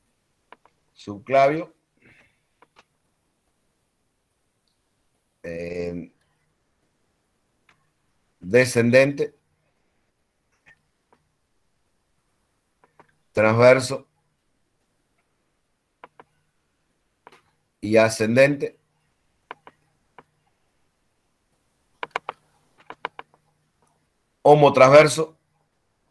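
A man speaks in short, calm phrases with pauses, heard through a microphone on an online call.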